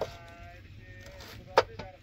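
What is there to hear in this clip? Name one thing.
A knife cuts through red cabbage on a wooden board.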